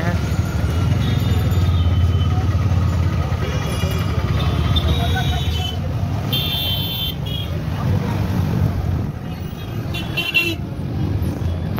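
Horns honk repeatedly nearby.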